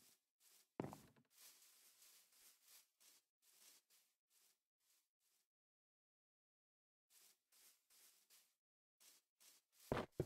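Footsteps tread softly on grass at a steady walking pace.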